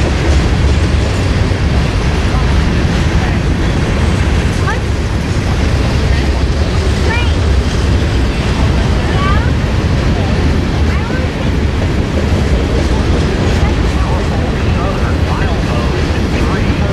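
A long freight train rumbles steadily past at close range.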